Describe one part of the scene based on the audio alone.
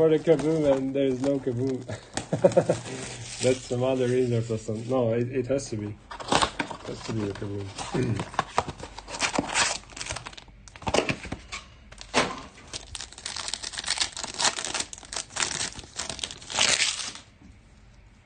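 Plastic wrapping crinkles and tears as hands open a pack.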